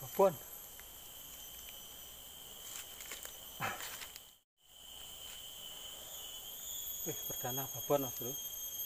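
A young man calls out and speaks close by with animation.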